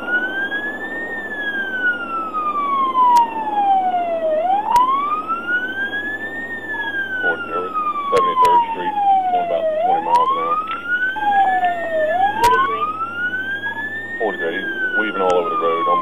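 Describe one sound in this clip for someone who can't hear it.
A siren wails close by, rising and falling slowly.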